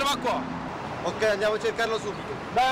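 Another young man answers quickly up close.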